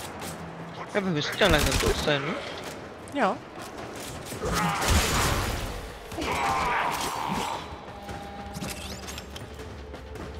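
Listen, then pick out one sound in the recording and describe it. Energy weapons fire in sharp, crackling blasts.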